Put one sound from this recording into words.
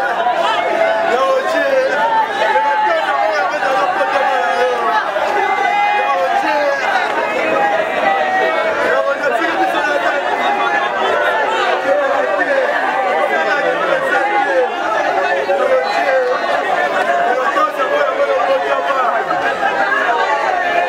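A large crowd of men and women talks and shouts all at once, close by, outdoors.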